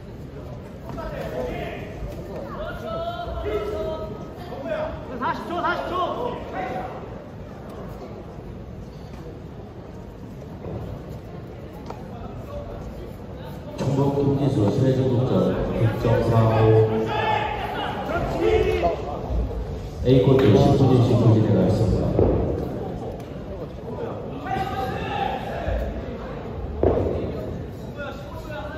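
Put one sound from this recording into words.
A male referee calls out commands in a large echoing hall.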